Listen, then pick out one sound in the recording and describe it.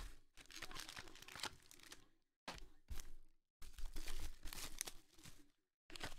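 Foil-wrapped trading card packs crinkle and rustle in hands.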